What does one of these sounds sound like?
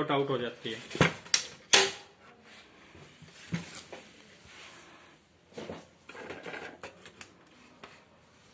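Plastic parts of a printer clatter as hands handle it.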